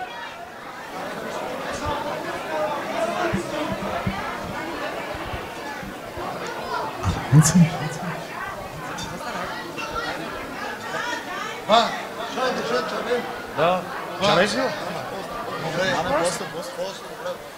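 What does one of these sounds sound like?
A crowd of people chatter nearby.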